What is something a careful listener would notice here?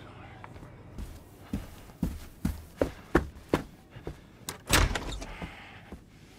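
A man's footsteps hurry across a hard floor.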